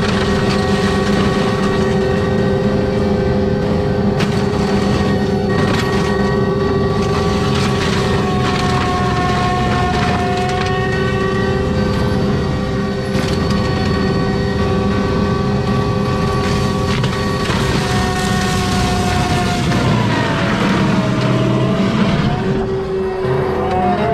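A heavy machine's engine roars and whines steadily close by.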